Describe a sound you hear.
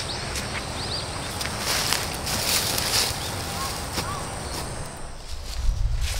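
Boots tread through dry grass.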